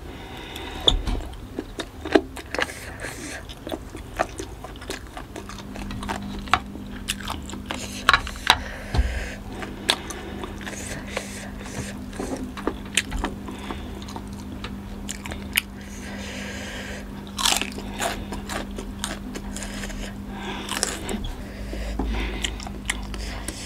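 A young woman chews and smacks her lips close to the microphone.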